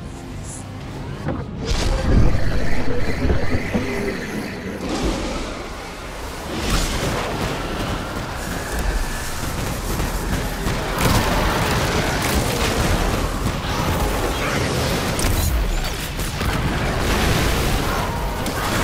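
Guns fire in rapid bursts with loud blasts and explosions.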